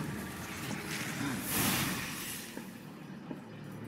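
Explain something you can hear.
A magical whoosh bursts as a card is played.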